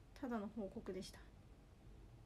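A young woman speaks briefly and softly close by.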